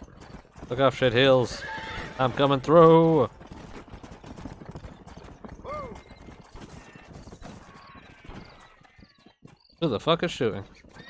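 A horse's hooves clop steadily on a dirt trail.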